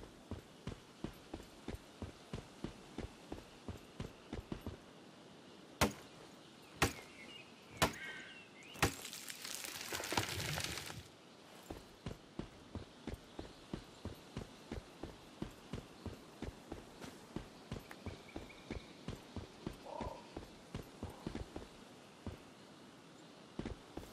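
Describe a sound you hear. Footsteps swish steadily through tall grass.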